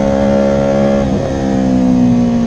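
A motorcycle engine briefly dips as a gear changes, then climbs again.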